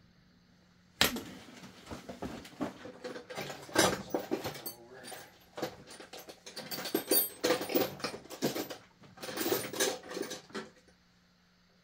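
Metal parts clink and rattle as a small engine is taken apart.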